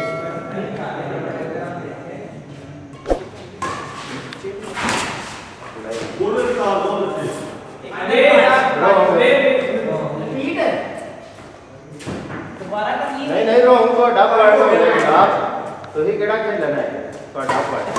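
A shuttlecock is struck sharply back and forth with rackets.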